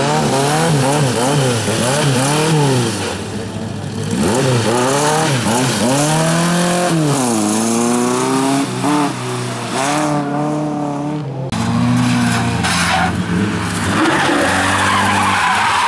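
Tyres scrabble and spray loose gravel.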